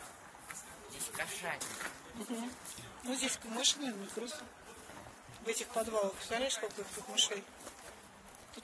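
A woman speaks with animation outdoors, close by.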